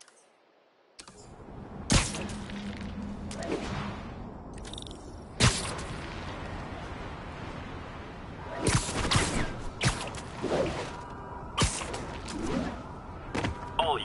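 Wind rushes loudly past as a figure swings fast through the air.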